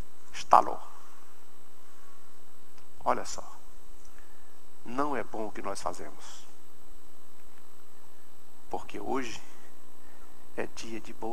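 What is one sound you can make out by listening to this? A man speaks with animation into a microphone in a large echoing hall.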